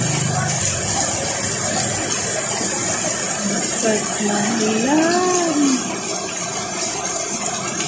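Heavy rain pours outdoors onto a paved street.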